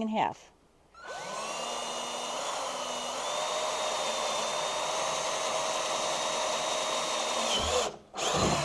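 A cordless drill whirs steadily as it bores through plastic.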